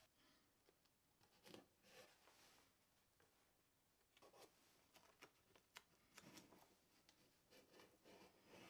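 Tape crackles as it is pulled and pressed down by hand.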